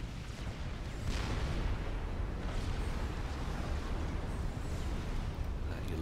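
Explosions and gunfire rumble in a distant battle.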